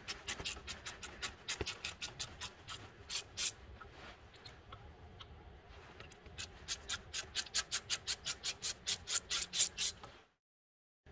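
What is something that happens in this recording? A ratchet wrench clicks rapidly in short bursts.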